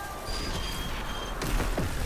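Energy weapons fire in bursts.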